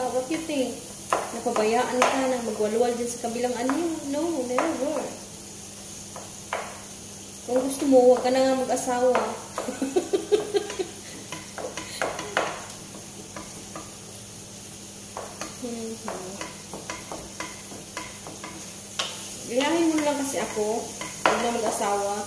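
A wooden spatula stirs and scrapes food in a frying pan.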